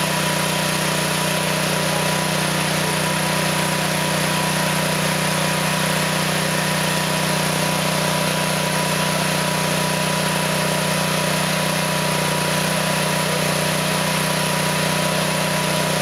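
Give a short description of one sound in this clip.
A machine motor hums steadily outdoors.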